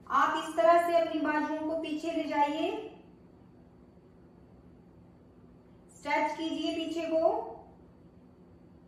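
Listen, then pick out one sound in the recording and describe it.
A young woman speaks calmly, giving short instructions.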